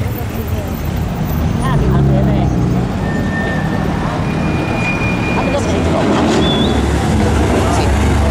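A BMW M4's turbocharged straight-six rumbles as it drives off at low speed.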